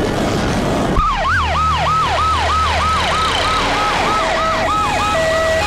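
A siren wails in a rapid rising and falling pattern.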